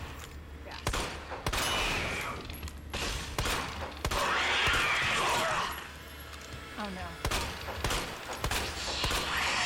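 A handgun fires shot after shot, with sharp loud bangs.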